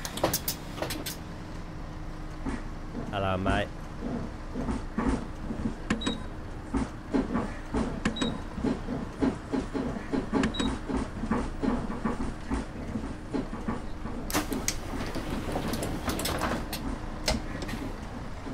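A bus engine idles with a steady low hum.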